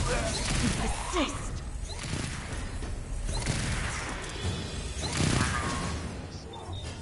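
Gunfire crackles and booms in a video game battle.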